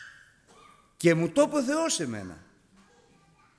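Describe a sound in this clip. A middle-aged man speaks with animation into a microphone in a reverberant hall.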